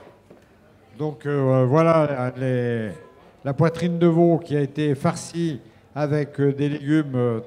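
An elderly man speaks with animation into a microphone, heard through a loudspeaker.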